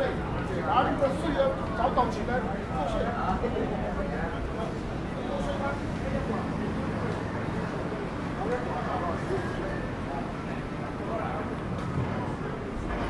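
People chatter in a busy, echoing hall.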